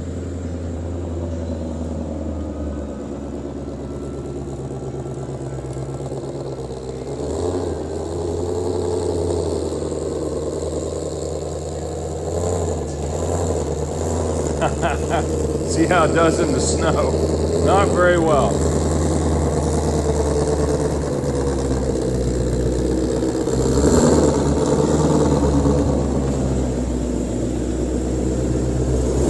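A powerful car engine rumbles and revs throughout.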